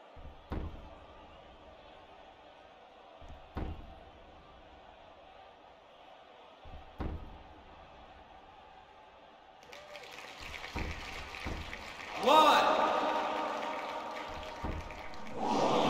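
Blows land with sharp thuds at intervals.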